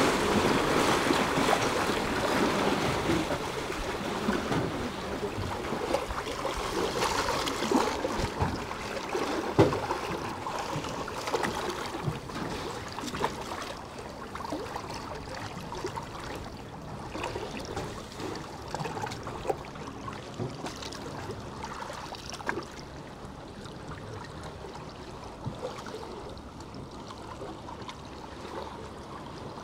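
Waves slosh and lap nearby.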